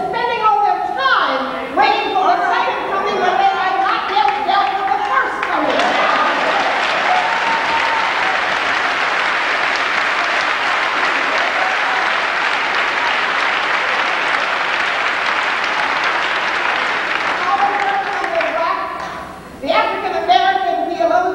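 An elderly woman speaks with animation through a microphone in a large echoing hall.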